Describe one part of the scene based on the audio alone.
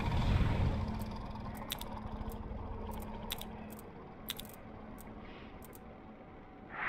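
Short sharp clicks sound as menu options are selected.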